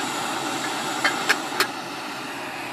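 A metal pot lid clanks against a pot.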